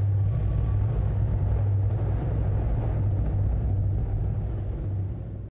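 Wind rumbles steadily against the microphone outdoors.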